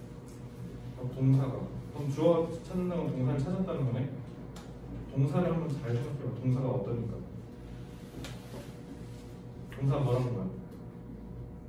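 A young man speaks in a muffled, lecturing tone, close by, with long pauses.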